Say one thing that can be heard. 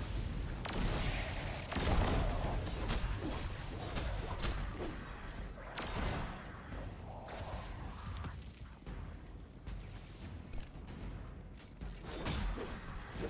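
A gun fires rapid shots with an electric crackle.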